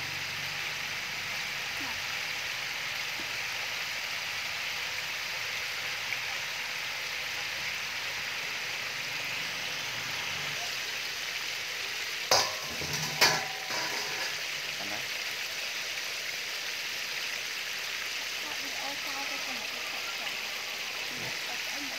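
Chicken pieces sizzle and bubble in hot oil in a deep fryer.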